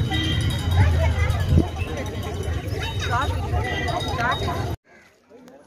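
A crowd of women and men chatter nearby outdoors.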